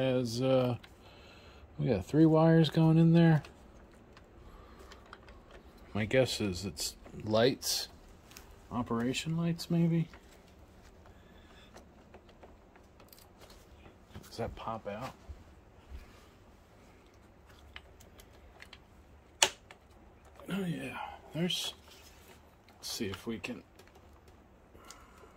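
Plastic parts click and rattle as a cable connector is fitted and pulled.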